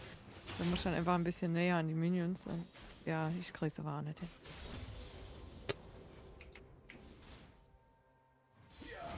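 Game spells and attacks crackle and whoosh during a battle.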